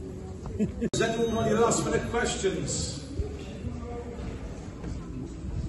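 A man speaks calmly to a small group nearby.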